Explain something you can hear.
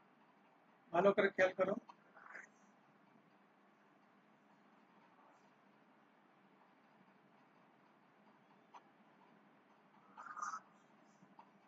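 A young man speaks briefly through an online call.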